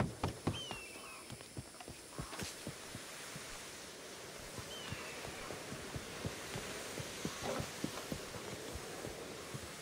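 Footsteps run quickly across a hard stone surface.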